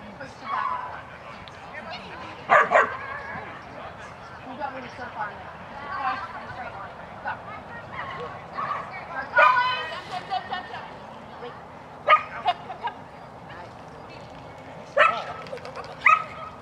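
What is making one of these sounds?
A woman calls out commands to a dog.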